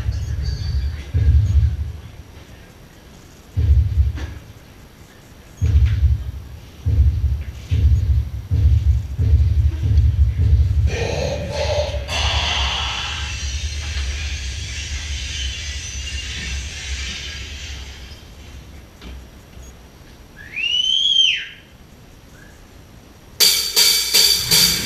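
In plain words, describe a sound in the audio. Drums are struck in loud bursts of booming beats.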